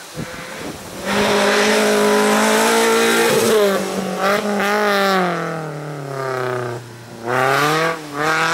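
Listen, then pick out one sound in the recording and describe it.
A small car's engine revs hard and rises and falls in pitch as it races past.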